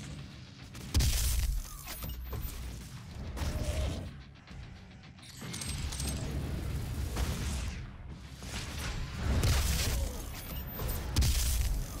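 Heavy guns fire with loud booming blasts.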